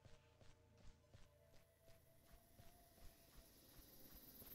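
Gunshots crack in a quick, steady series.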